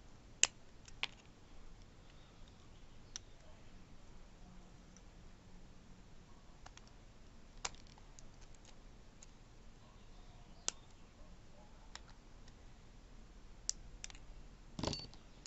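Metal pliers click and scrape against a metal piston ring.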